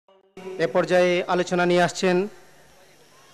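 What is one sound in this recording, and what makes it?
A man speaks loudly into a microphone, heard through a loudspeaker with echo.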